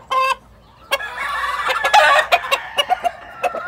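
A rooster calls.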